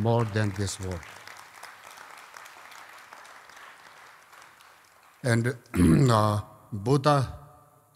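An elderly man speaks slowly and calmly through a microphone, with a slight echo.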